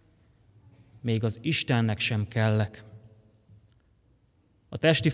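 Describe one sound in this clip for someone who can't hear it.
A young man reads out calmly into a microphone.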